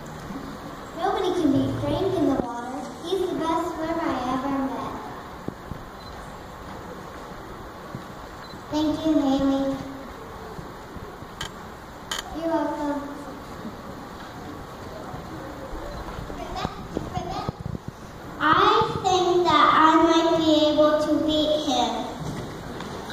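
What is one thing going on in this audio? A young woman announces through a loudspeaker in a large hall.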